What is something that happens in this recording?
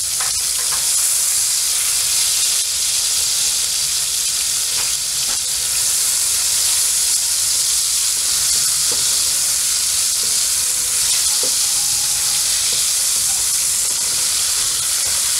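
Food sizzles steadily in hot oil in a frying pan.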